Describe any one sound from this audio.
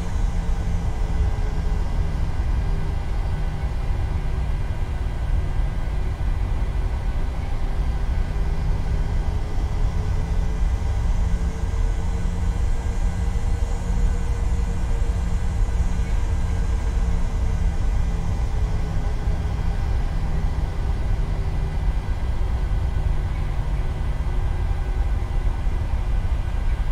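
Jet engines drone steadily with a low rumble and a faint whine.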